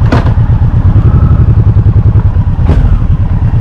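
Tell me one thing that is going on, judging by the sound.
A motorcycle engine revs briefly.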